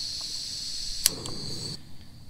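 A cast iron pan clanks down onto a stove.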